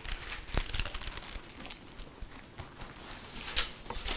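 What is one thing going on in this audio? Pages of a book rustle as a man turns them.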